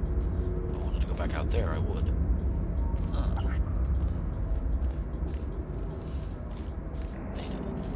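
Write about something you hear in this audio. A low mechanical hum drones steadily.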